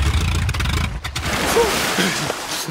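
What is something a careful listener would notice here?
Water splashes as a man bursts up from the sea.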